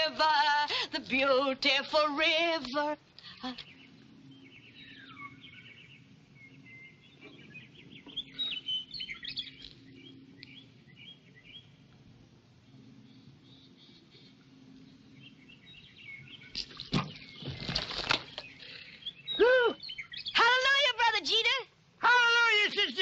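A woman calls out loudly in a sing-song voice outdoors.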